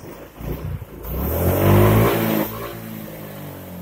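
A scooter engine revs up briefly, then settles back.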